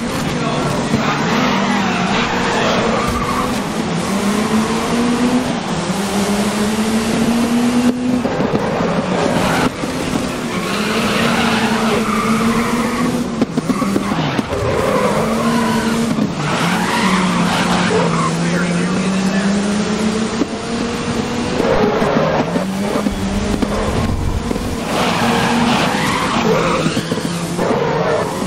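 Tyres screech as a car slides through corners.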